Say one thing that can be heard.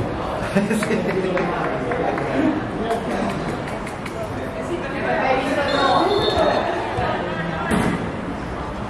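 Men talk and call out nearby, outdoors.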